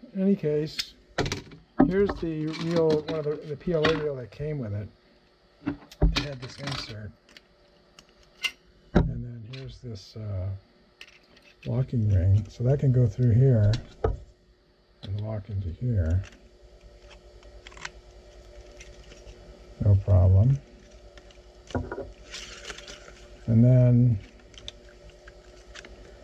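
Plastic parts click and rattle as they are handled close by.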